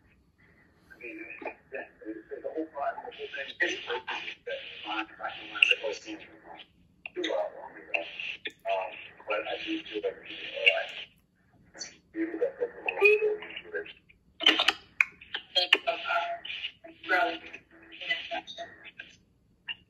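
A young man speaks with animation through a phone's video call.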